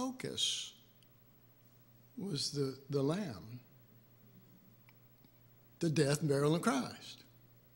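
An elderly man speaks slowly into a microphone, with pauses.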